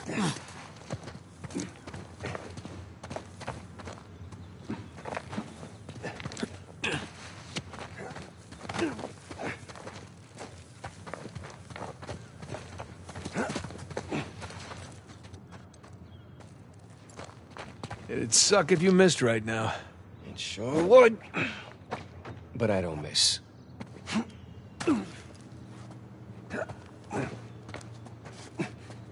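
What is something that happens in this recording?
Footsteps crunch on dry grass and gravel.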